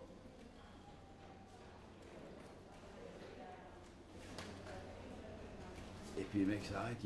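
Men and women chat quietly in the background, outdoors.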